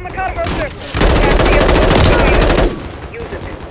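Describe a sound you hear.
A rifle fires a rapid, loud burst.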